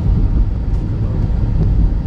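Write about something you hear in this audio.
A hand pats a soft pillow.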